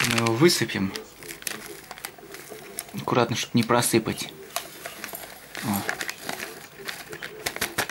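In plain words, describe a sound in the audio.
A paper packet rustles as it is torn open and emptied.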